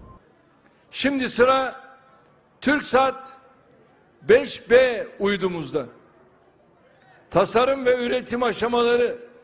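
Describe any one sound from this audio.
A man speaks forcefully into a microphone over loudspeakers, heard with echo in a large open space.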